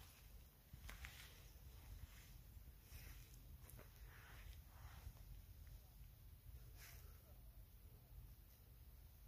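Dry reeds rustle close by.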